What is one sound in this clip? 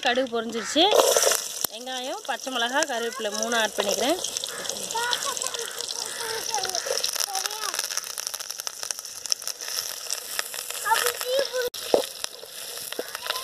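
Food sizzles in hot oil in a pot.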